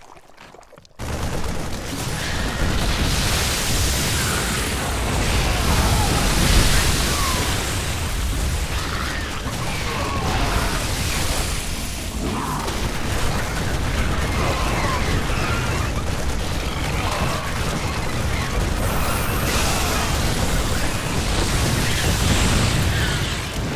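Gunfire and explosions crackle in a noisy battle.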